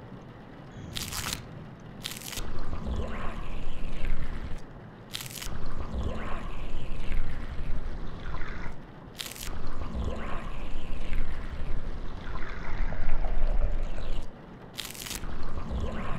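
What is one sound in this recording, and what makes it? A blade slices wetly into flesh.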